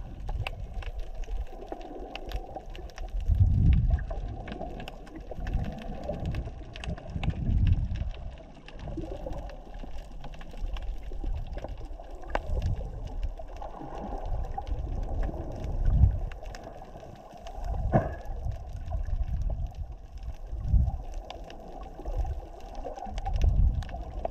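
Water rumbles and swirls in low, muffled surges underwater.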